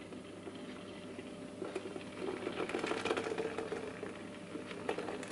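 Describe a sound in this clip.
A thick liquid pours and splashes into a metal strainer.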